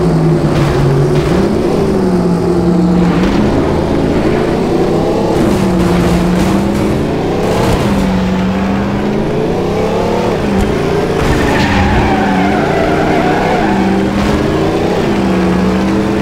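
Cars bang and scrape against each other.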